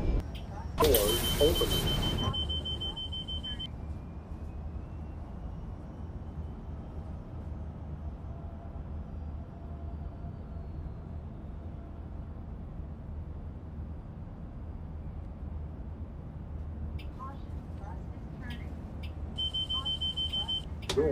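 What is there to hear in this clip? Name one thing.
A bus door chime beeps rapidly.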